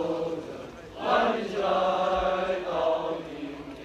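A group of young women sing together nearby.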